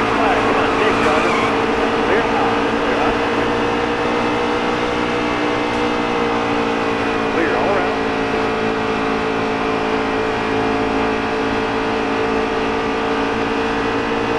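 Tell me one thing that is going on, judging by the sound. Racing truck engines roar steadily at high speed.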